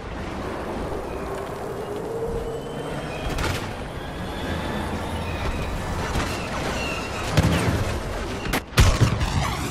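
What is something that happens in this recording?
A hover bike engine whines and roars at speed.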